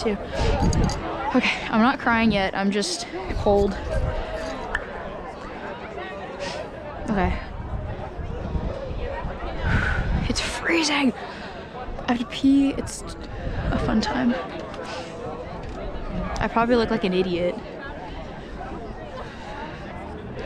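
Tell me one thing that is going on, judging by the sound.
A crowd of young people chatters and calls out across a wide open space outdoors.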